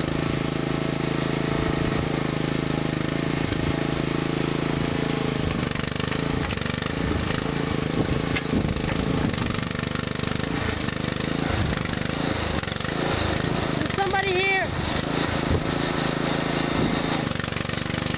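A small engine runs steadily close by.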